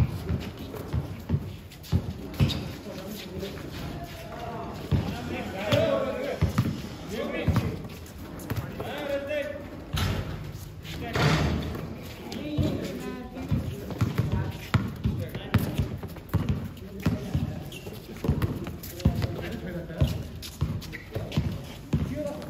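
A basketball bounces on a hard court again and again.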